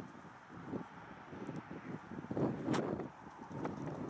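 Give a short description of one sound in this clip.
A car key fob button clicks.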